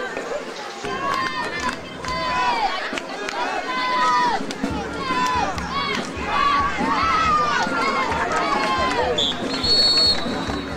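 Adult men and boys on the sidelines shout and cheer loudly.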